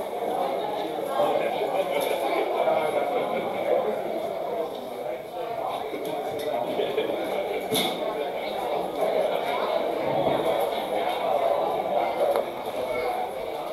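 A crowd of children and adults chatters noisily in an echoing hall.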